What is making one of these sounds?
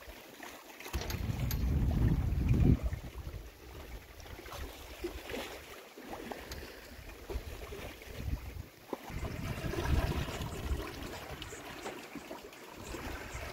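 Waves slosh and splash against a moving boat's hull.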